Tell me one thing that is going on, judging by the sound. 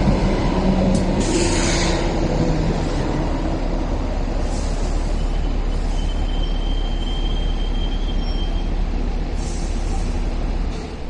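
Train wheels screech and squeal on the rails.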